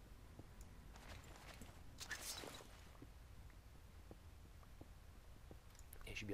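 Stone blocks crumble and break.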